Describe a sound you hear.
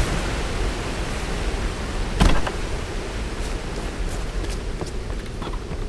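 Footsteps thud softly on the ground.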